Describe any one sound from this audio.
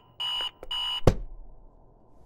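A hand slaps down on an alarm clock with a thud.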